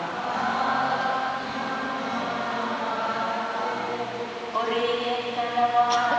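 A singer sings a slow, sustained hymn through a microphone in a large echoing hall.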